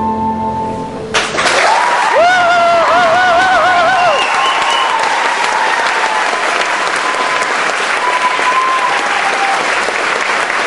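A saxophone plays a wavering melody.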